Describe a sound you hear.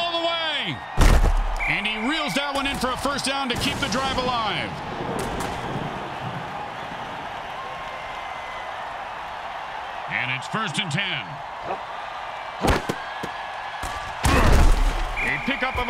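Armored players collide with heavy thuds.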